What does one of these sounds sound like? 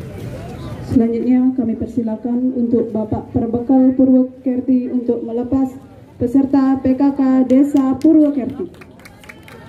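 A group of young women sings loudly together.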